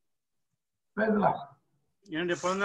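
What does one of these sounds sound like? A middle-aged man speaks briefly over an online call.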